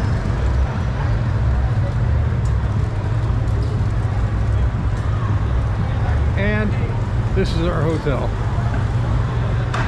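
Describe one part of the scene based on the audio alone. City traffic rumbles steadily nearby outdoors.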